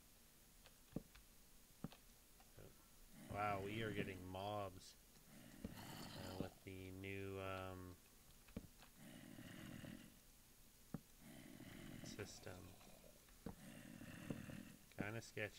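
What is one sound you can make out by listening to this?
Wooden blocks are placed with short, soft knocks.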